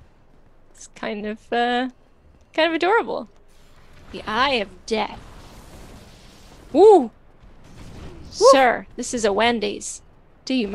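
A young woman talks excitedly and cries out into a microphone, in short high-pitched bursts.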